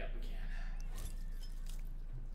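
A metal carabiner clicks shut on a rope.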